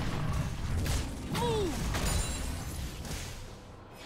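Magic blasts and sword hits crackle and thud in a video game battle.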